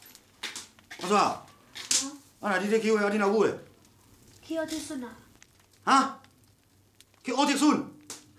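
A middle-aged man speaks calmly nearby.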